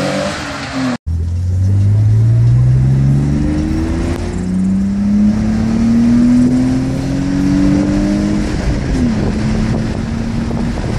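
A car engine pulls steadily higher as the car speeds up, heard from inside.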